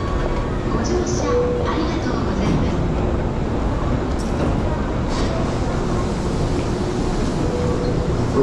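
A crowd murmurs with indistinct voices.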